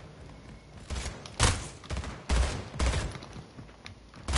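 Rifle shots ring out in a video game.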